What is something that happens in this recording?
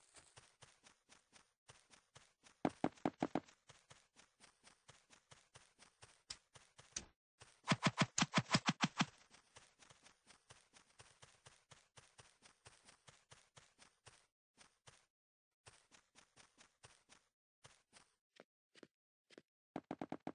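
Quick, light footsteps patter steadily on hard ground.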